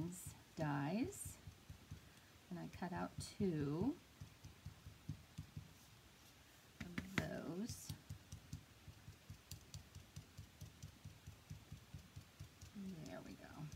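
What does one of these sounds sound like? A rubber stamp taps and presses softly on paper.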